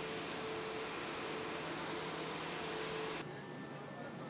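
A jet airliner's engines whine loudly nearby.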